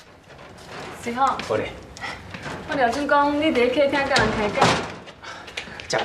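A woman speaks with a mild complaint nearby.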